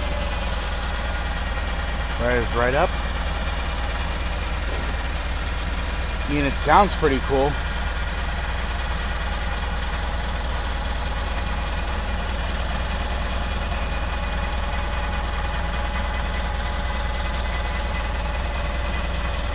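A forklift engine idles.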